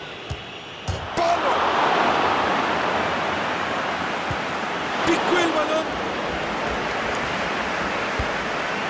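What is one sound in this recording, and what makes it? A stadium crowd surges into a loud cheer.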